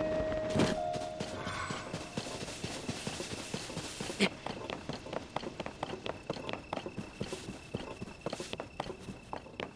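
Footsteps run quickly over grass and rock.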